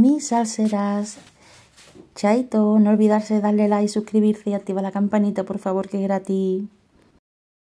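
A woman sings a sustained melody.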